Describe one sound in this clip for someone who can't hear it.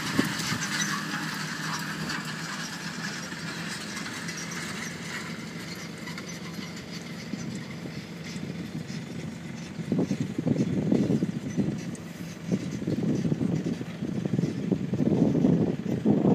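A tractor engine rumbles steadily as it pulls away into the distance.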